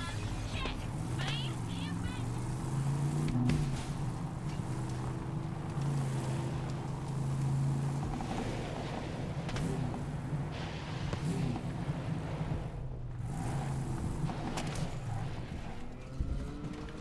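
A vehicle engine hums steadily as it drives.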